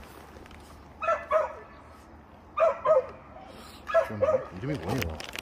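A small dog barks in short, high yaps.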